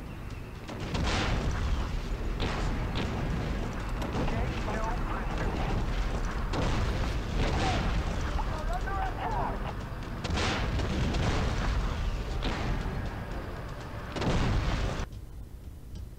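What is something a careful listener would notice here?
Tank engines rumble steadily.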